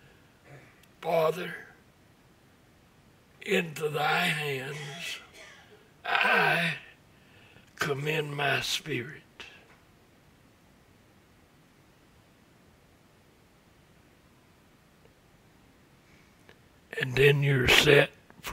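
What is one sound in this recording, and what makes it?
An elderly man preaches through a microphone, speaking in short bursts with long pauses.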